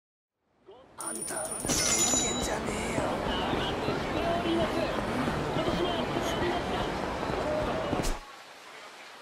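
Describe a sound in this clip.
A busy street hums with a murmuring crowd.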